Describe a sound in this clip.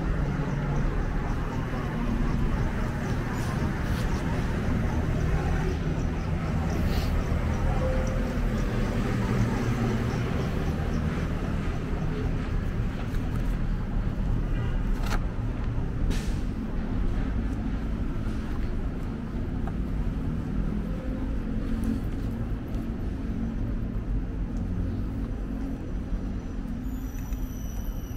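Outdoors, the low rumble of steady street traffic fills the air.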